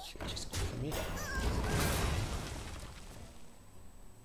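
A magical clash crashes with a burst of shimmering effects.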